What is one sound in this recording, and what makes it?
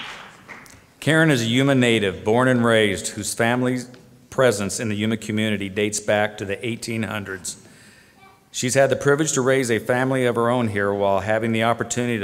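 A man speaks calmly into a microphone, heard through loudspeakers in a large hall.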